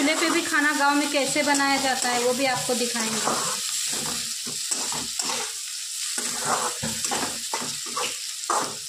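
Vegetables sizzle in hot oil.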